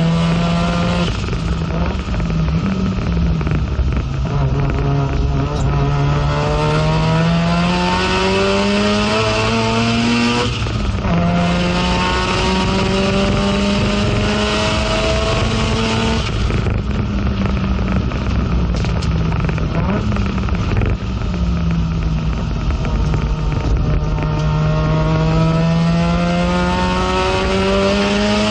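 A race car engine roars loudly from inside the cabin, revving up through the gears and dropping as it shifts.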